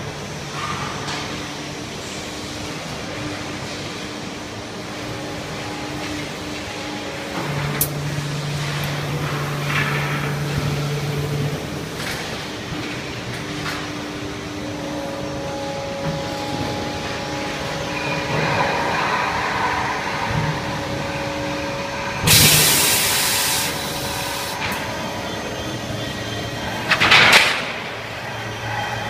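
Industrial machinery hums steadily.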